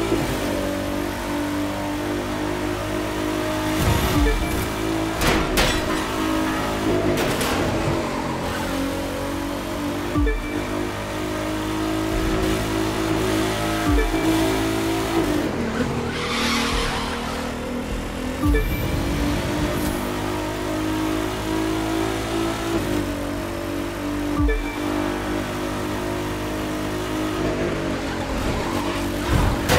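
A sports car engine roars at high speed, rising and dropping in pitch as it shifts gears.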